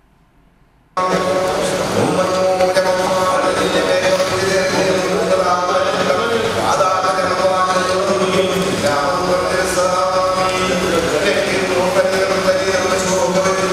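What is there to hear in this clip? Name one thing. A group of men chant together in unison.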